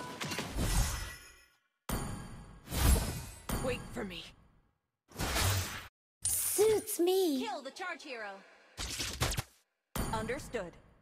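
Video game spell effects burst and whoosh in short bursts.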